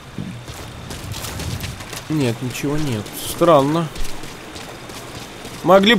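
Water splashes as someone wades quickly through a shallow stream.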